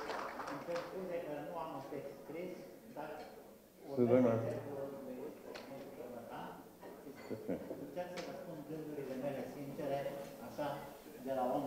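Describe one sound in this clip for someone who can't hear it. An elderly man speaks slowly into a microphone.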